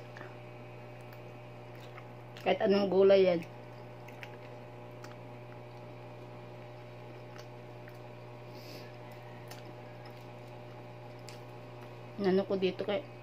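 A woman chews food with soft smacking sounds.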